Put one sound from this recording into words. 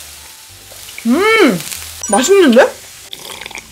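A young woman hums with pleasure while chewing.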